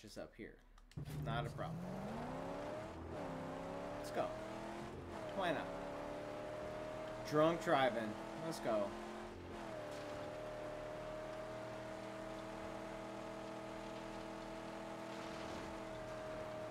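A car engine roars and revs as a car speeds along.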